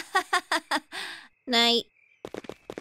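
A young woman laughs awkwardly.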